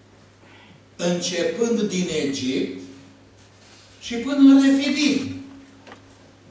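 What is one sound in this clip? An elderly man preaches forcefully through a microphone in an echoing hall.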